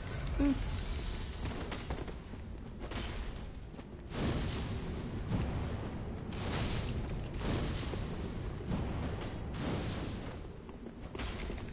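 Metal blades clash and clang in a fight.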